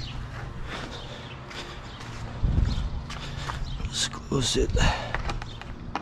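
Footsteps scuff on concrete.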